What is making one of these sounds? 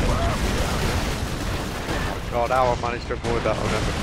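Gunfire and explosions boom and crackle.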